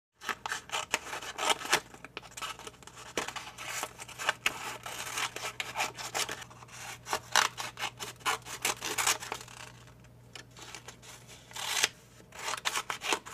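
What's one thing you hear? Scissors snip and slice through paper close by.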